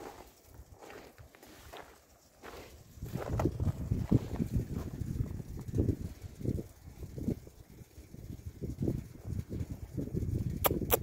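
Puppies patter and scuffle over loose gravel.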